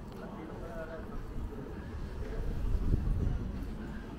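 Pedestrians chat faintly at a distance.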